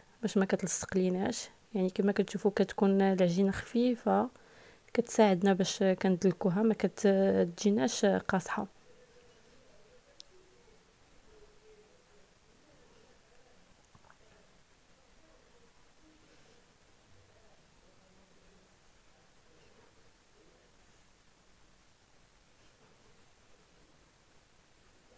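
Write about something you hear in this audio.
A wooden rolling pin rolls softly over dough.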